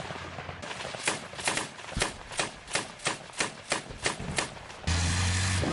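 A machine gun fires rapid bursts of shots close by.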